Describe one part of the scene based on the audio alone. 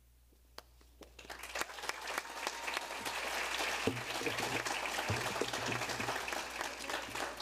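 A large audience applauds and cheers in a big hall.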